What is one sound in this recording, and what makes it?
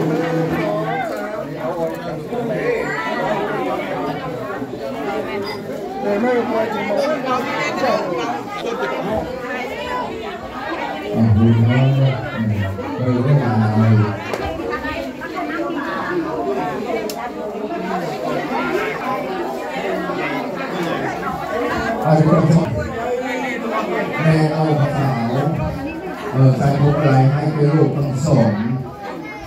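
A crowd of men and women chatter nearby in a busy room.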